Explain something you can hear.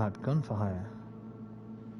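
A young man speaks briefly into a microphone, close by.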